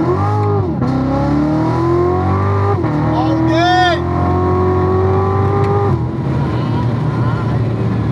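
A car engine revs hard and climbs in pitch, dropping briefly at each gear change.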